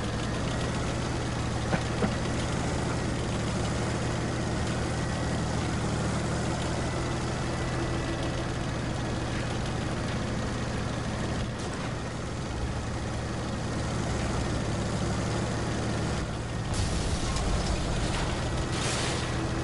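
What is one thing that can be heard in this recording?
Tank tracks rattle over cobblestones.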